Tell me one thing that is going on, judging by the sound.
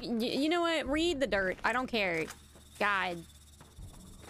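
A young woman talks with animation into a close microphone, in a high, playful voice.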